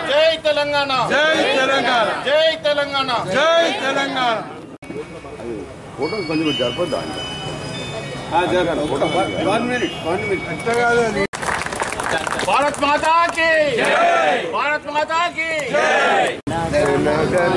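A man shouts slogans loudly.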